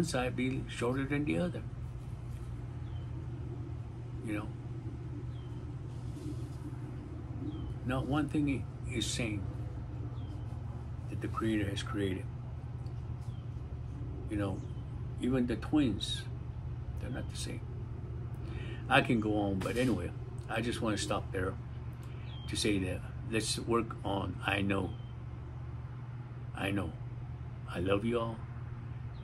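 A middle-aged man speaks calmly and closely into a microphone, with long pauses.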